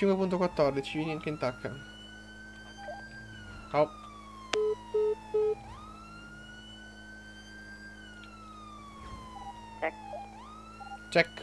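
A police siren wails, slowly rising and falling.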